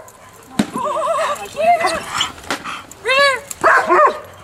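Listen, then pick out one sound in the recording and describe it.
A dog whines and howls.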